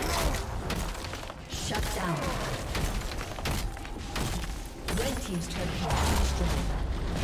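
Spell effects crackle and blast during a video game fight.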